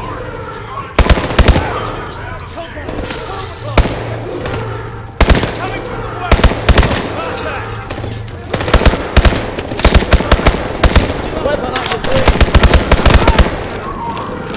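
Rapid gunfire bursts out loudly again and again.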